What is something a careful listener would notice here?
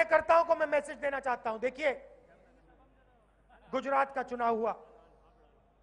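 A young man speaks forcefully into a microphone over loudspeakers outdoors, with pauses.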